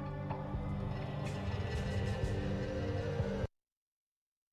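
Game music plays and stops abruptly.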